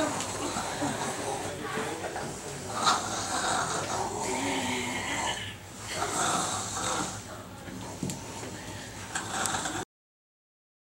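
A young boy giggles close by.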